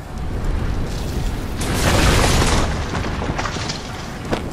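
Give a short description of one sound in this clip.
Wind roars in a swirling storm.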